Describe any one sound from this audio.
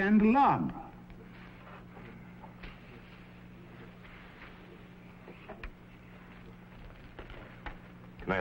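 An elderly man speaks in a strained, emotional voice.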